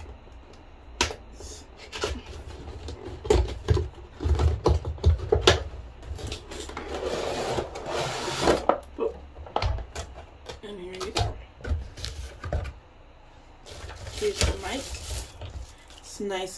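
Cardboard packaging rustles and crackles as it is opened.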